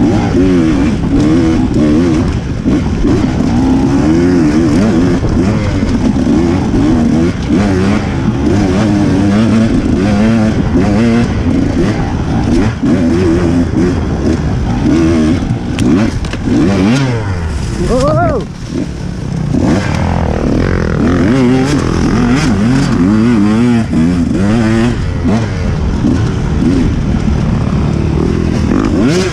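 Other dirt bike engines buzz ahead.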